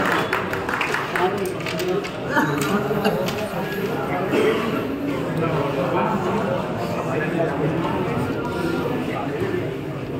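Wooden game pieces click and clatter on a board.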